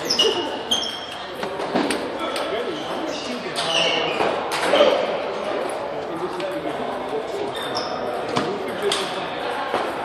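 A ping-pong ball clicks sharply back and forth on paddles and tables.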